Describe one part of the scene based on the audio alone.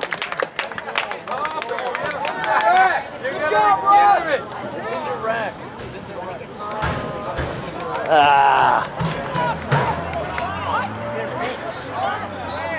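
A crowd of spectators shouts and cheers outdoors nearby.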